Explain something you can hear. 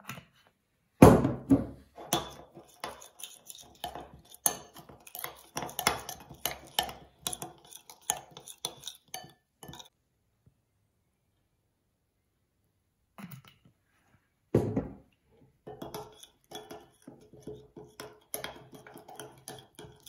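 A spoon clinks and scrapes against a ceramic bowl while stirring.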